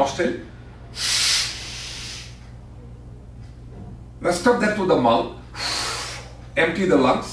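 A man breathes out loudly and slowly.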